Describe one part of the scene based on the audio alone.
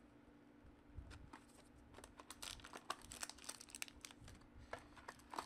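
Cardboard and foil packs rustle and tap as hands handle them.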